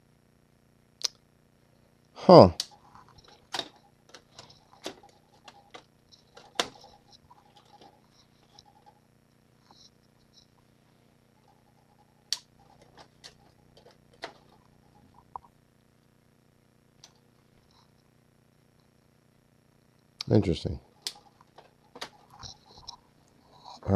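A plastic game cartridge clicks and rattles as it is pushed into and pulled from a slot.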